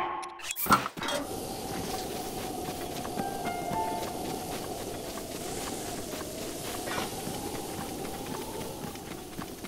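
Wind blows steadily through grass outdoors.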